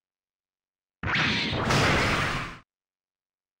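A large fiery explosion roars and crackles.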